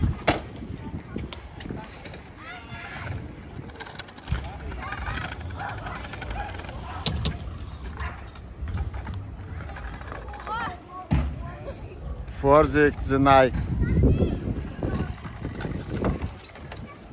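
A scooter deck clatters sharply on the ground.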